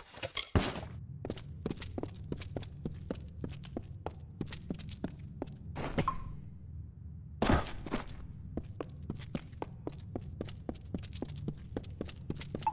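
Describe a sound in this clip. Footsteps thud quickly on stone.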